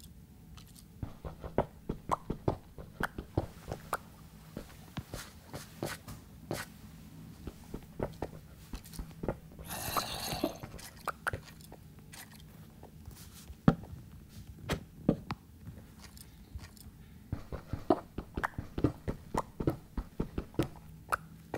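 A pickaxe taps rapidly on stone, breaking blocks.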